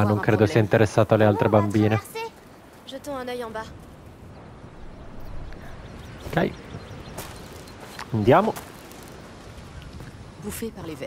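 Footsteps crunch on a grassy, rocky path.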